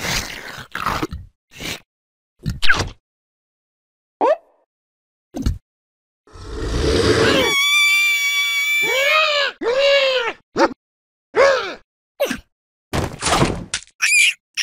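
A cartoon bird squawks and groans.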